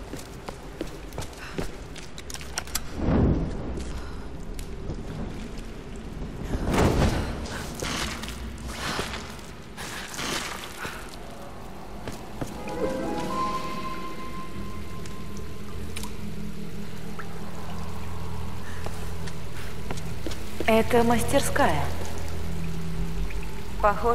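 Footsteps crunch over stone and dirt.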